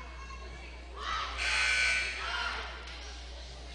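A group of girls shout a cheer together in an echoing gym.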